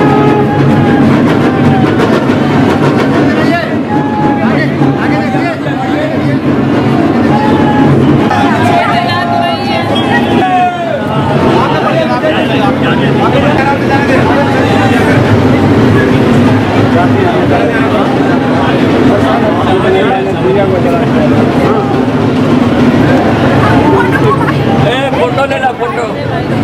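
A large crowd chatters and shouts loudly outdoors.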